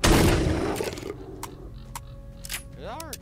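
A shotgun breaks open and is reloaded with metallic clicks.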